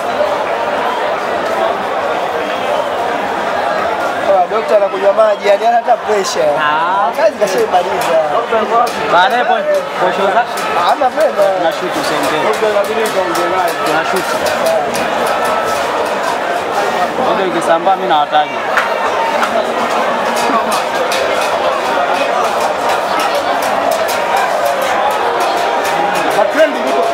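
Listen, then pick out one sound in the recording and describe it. A large crowd murmurs and chatters steadily outdoors.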